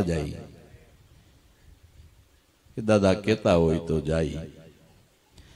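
A middle-aged man sings through a microphone.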